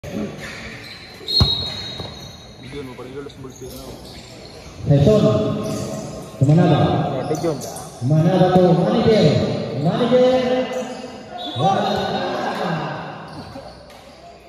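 Young players shout across an echoing covered court.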